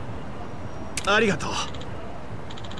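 An older man exclaims cheerfully and briefly.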